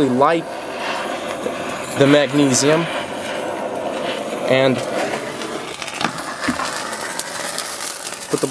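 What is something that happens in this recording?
A gas torch roars with a steady hiss.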